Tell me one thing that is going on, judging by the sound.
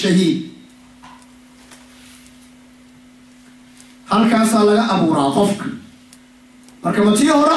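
A man speaks with emphasis into a microphone, heard through a loudspeaker in an echoing room.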